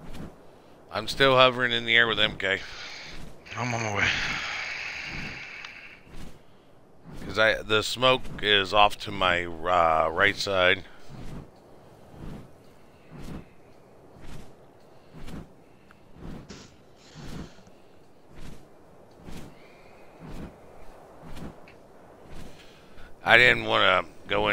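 A man talks casually into a nearby microphone.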